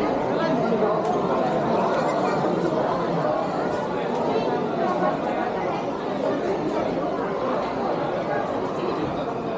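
A crowd chatters in a busy indoor hall.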